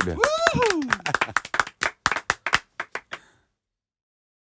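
A man claps his hands several times.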